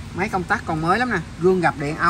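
A switch clicks.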